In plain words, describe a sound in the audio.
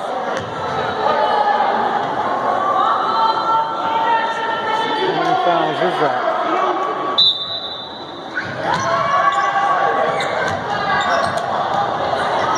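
Basketball shoes squeak on a hardwood floor.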